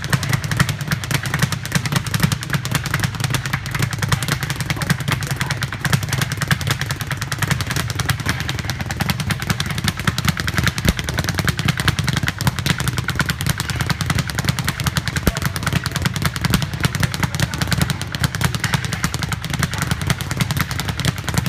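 A speed bag rattles rapidly against a wooden platform in a fast, steady rhythm.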